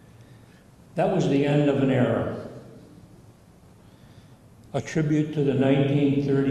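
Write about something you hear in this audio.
An elderly man speaks loudly and with feeling into a microphone, in bursts with pauses.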